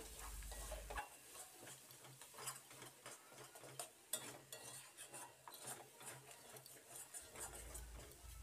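A spatula scrapes and stirs food in a metal pan.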